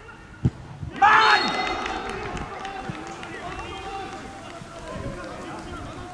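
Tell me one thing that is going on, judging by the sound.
Young men shout and cheer outdoors, some way off.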